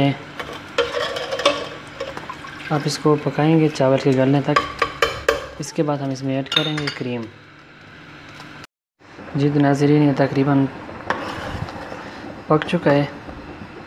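A metal ladle stirs liquid in a metal pot, scraping and splashing.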